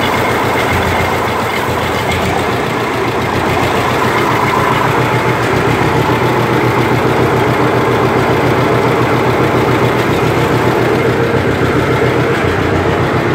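An old tractor engine runs close by with a steady, loud chugging rumble.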